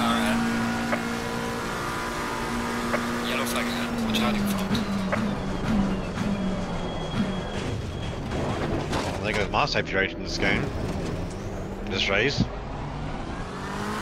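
A racing car engine roars steadily, then drops in pitch as the car brakes and shifts down.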